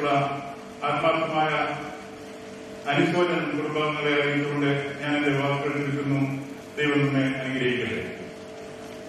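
An elderly man speaks slowly and with emotion into a microphone, heard through a loudspeaker.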